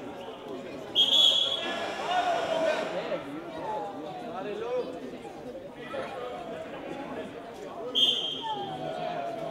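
A referee's whistle blows sharply in an echoing hall.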